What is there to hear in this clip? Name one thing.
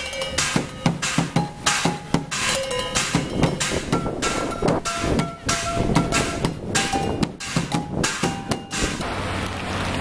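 A young man drums fast rhythms on pots and pans outdoors.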